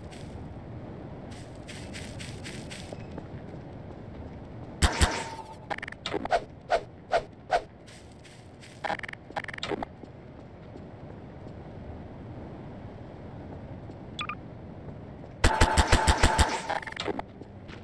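A zapping energy gun fires in rapid bursts.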